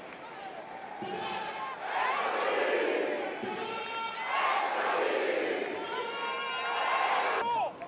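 A large crowd roars, swelling louder as the play goes on.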